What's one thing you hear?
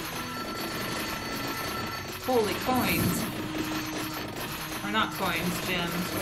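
Video game sound effects crackle and chime steadily.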